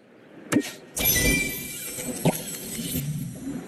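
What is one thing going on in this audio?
A bright chiming jingle plays as a reward of coins is collected.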